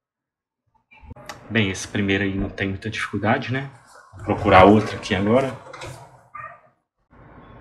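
A man talks animatedly close to a phone microphone.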